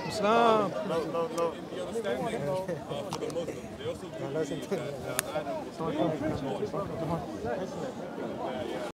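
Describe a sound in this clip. A young man speaks with animation close by, outdoors.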